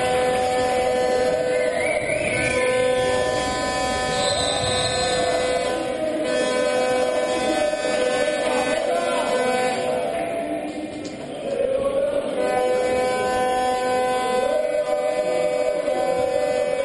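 A crowd cheers and chants loudly in a large echoing hall.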